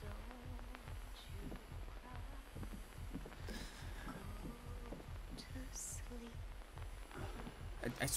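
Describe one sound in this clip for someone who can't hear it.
A young man talks quietly into a microphone.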